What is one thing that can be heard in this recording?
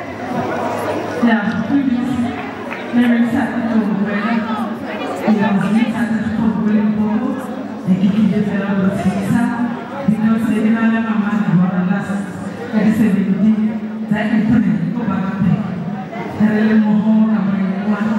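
A woman sings loudly into a microphone over loudspeakers.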